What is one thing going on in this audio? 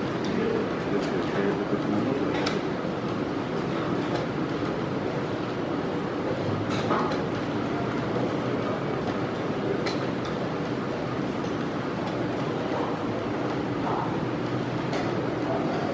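Chess pieces knock sharply on a wooden board now and then.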